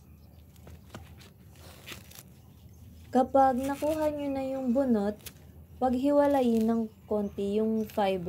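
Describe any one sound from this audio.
Dry coconut husk fibers rip and rustle as they are pulled apart by hand.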